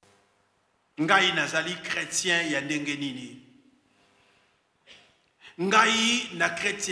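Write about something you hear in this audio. A man speaks emphatically through a microphone, with pauses.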